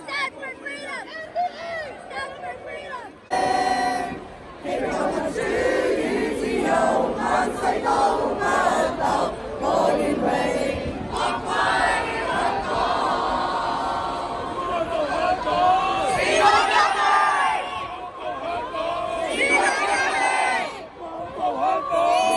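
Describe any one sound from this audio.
A crowd of young men and women chants loudly in unison in a large echoing arena.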